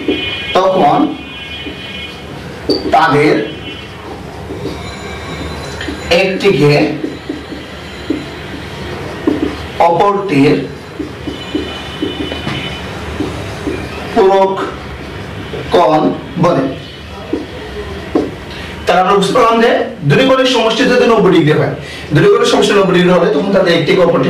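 A man speaks in bursts, explaining calmly, close by.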